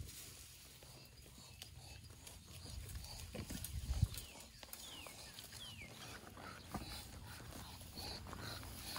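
Goats rustle through tall grass as they graze.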